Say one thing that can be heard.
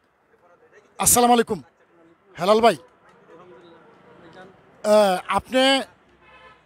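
A middle-aged man speaks loudly into a close microphone in short bursts.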